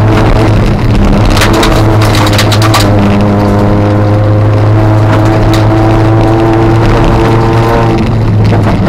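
Windscreen wipers thump across the glass.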